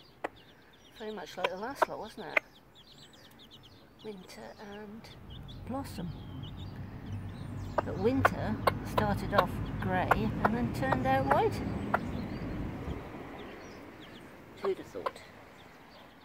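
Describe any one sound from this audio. Chicks cheep in high, quick chirps close by.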